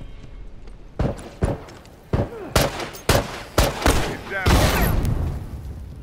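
Gunshots crack out in sharp, uneven bursts close by.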